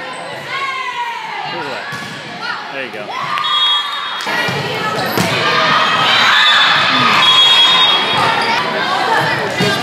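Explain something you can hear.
Young women call out and shout to each other in a large echoing gym.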